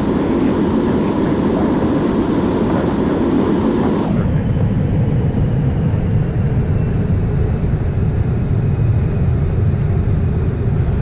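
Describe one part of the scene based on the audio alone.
Jet engines roar steadily as an airliner rolls down a runway, the roar suddenly turning to a deep low rumble.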